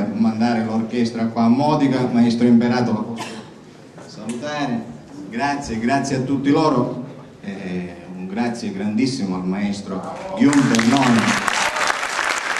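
A middle-aged man speaks through a microphone and loudspeakers in a large hall.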